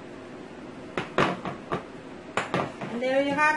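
A glass pitcher knocks down onto a tiled counter.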